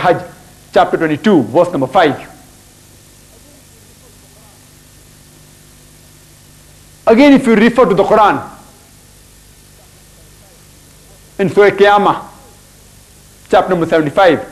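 A man speaks with animation in short bursts into a clip-on microphone, with pauses between.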